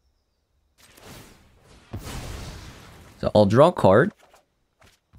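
A card game plays a magical whooshing effect as a card is cast.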